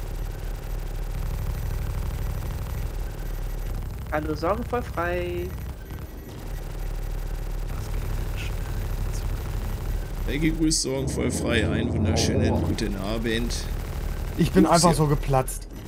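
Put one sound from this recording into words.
A spacecraft engine drones steadily.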